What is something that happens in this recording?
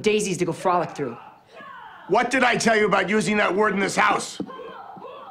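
A young man speaks forcefully, close by.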